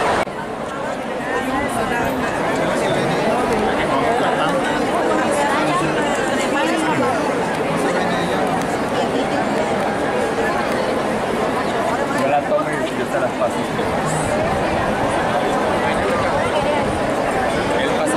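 A large crowd chatters and cheers all around, outdoors.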